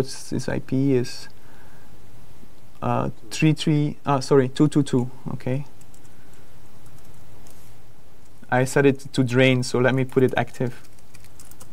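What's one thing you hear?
A man talks calmly into a microphone, with pauses.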